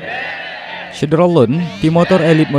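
A group of young men shouts and cheers loudly together.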